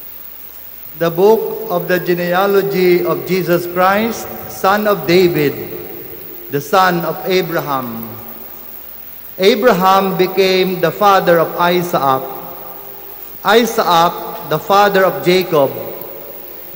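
A man speaks calmly into a microphone, reading out in a reverberant hall.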